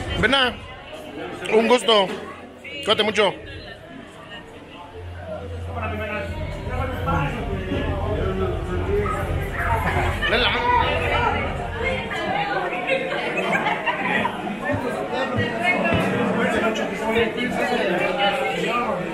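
A crowd of men and women chatters and laughs in a busy room.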